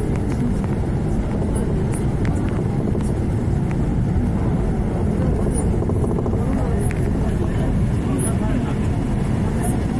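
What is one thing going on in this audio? A vehicle rumbles steadily as it drives along.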